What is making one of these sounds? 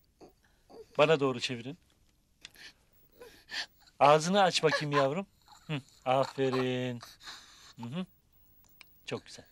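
A young child cries and wails close by.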